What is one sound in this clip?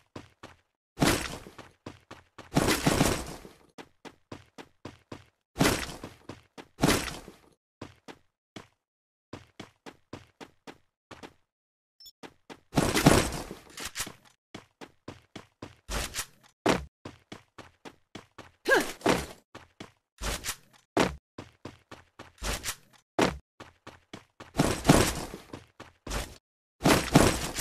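Gunshots fire in rapid bursts and echo.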